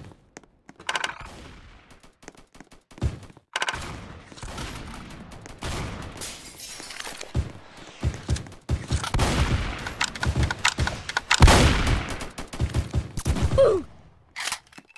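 Wooden building pieces clack into place in quick bursts.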